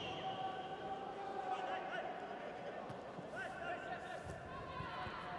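A crowd murmurs and calls out across a large open stadium.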